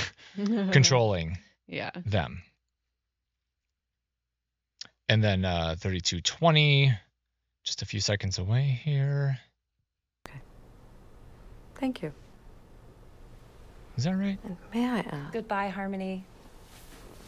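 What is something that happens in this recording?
A middle-aged woman speaks calmly and firmly.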